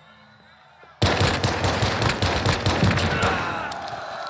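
A gun fires a rapid burst of shots that echo.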